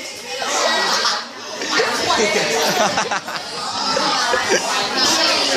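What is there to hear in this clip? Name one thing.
Teenage boys and girls chatter noisily all around, close by.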